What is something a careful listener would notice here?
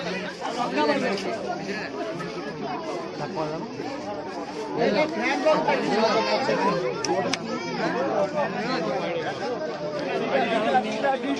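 A large crowd of men and women talks and shouts all around, close by, outdoors.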